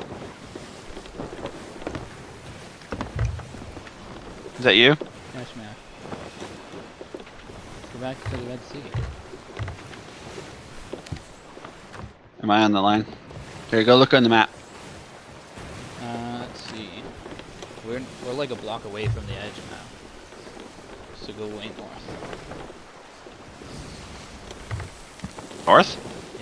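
Stormy sea waves crash and roar.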